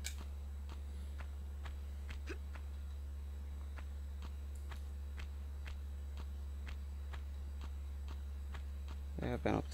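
Quick footsteps run over a hard stone floor.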